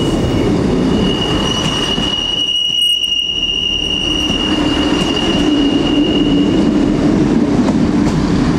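A train rumbles past close by on the rails.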